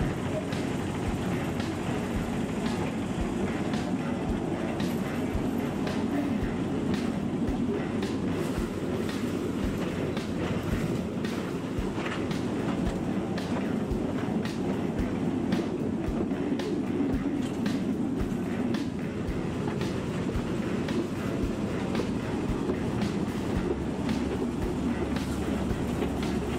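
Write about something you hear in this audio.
A small train rumbles steadily along its track.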